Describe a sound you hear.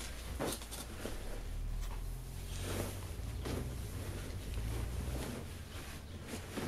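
Fabric rustles and brushes close by.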